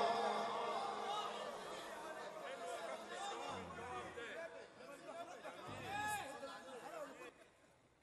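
A large crowd murmurs and calls out in approval.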